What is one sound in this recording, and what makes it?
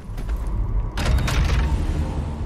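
A heavy gun fires a loud blast.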